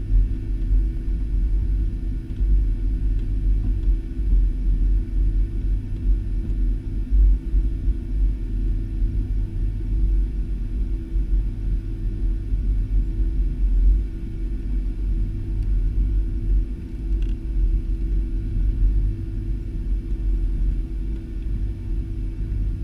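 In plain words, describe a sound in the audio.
Low rumbling from the wheels on the runway shakes the cabin.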